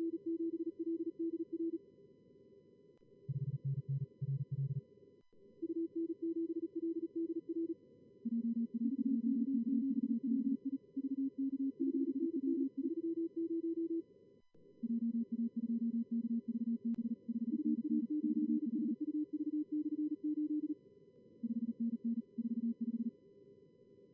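Morse code tones beep in quick bursts at several pitches.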